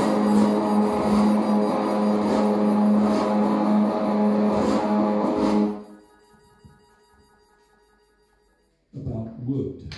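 Electronic music drones loudly with a steady high tone, then fades away.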